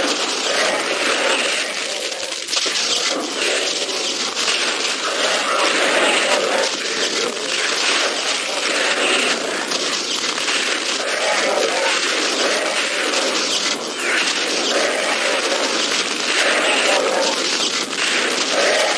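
Fiery explosions boom in a video game.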